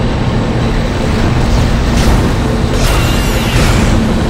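A futuristic gun fires bursts of energy shots.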